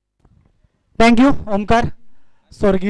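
A man speaks loudly and briefly.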